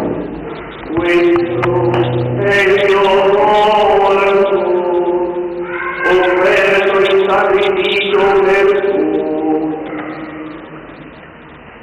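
An elderly man chants slowly in a steady, sung voice, heard in a reverberant hall.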